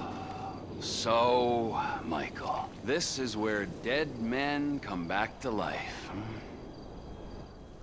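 A man speaks slowly and calmly.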